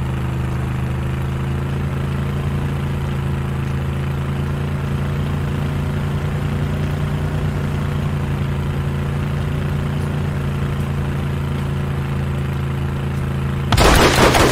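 A vehicle engine drones steadily as it drives over rough ground.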